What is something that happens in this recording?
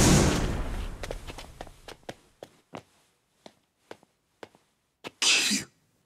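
Hard-soled footsteps walk across a floor.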